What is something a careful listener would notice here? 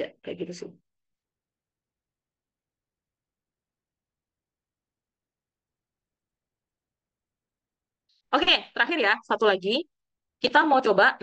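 A young woman speaks calmly into a microphone, heard as if through an online call.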